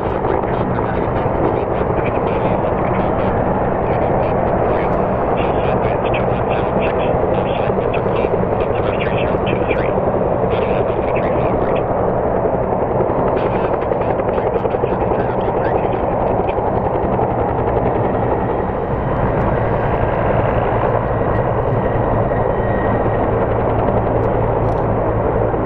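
A helicopter hovers nearby with its rotor thudding and engine whining steadily.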